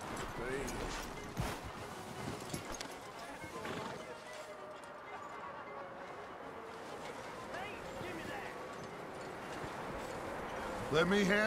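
Horse hooves crunch through snow.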